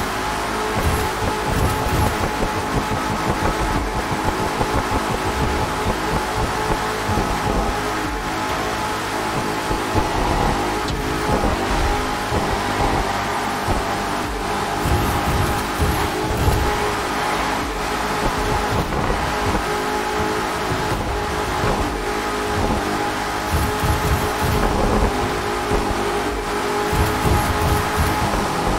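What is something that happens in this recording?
A sports car engine roars steadily at high speed.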